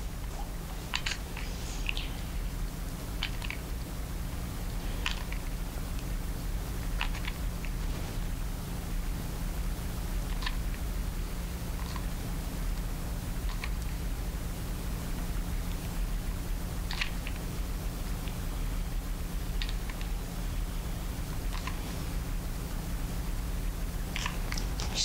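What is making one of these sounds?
A hot glue gun's trigger clicks now and then.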